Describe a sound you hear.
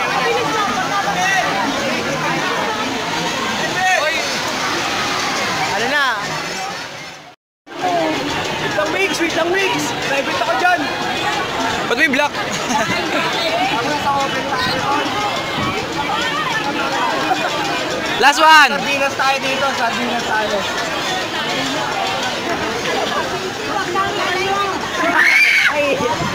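A crowd of young people chatters and laughs around.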